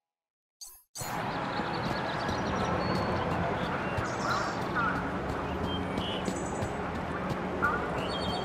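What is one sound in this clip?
Footsteps run quickly on a hard walkway.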